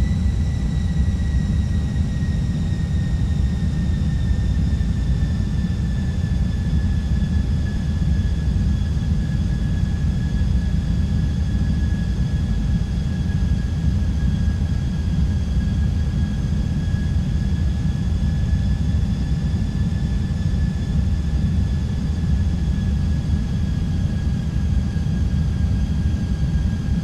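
Jet engines drone steadily with a low rumble and a high whine that slowly drops in pitch.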